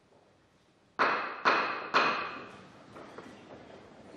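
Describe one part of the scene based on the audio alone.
Seats knock and clatter as a crowd stands up.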